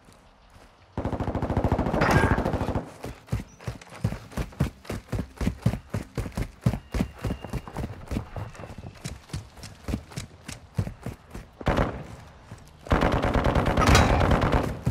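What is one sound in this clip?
A rifle fires rapid bursts of automatic gunfire.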